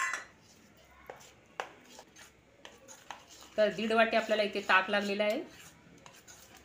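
A spoon stirs thick batter, scraping against a metal bowl.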